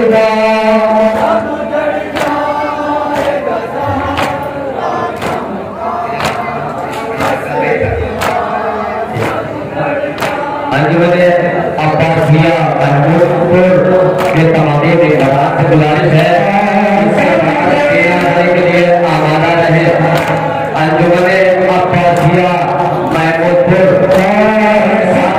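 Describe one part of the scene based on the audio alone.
A crowd of men chants loudly in unison outdoors.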